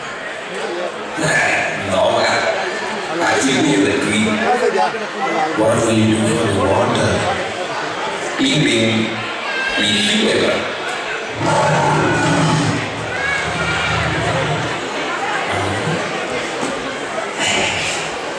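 A second young man answers, heard from across a hall.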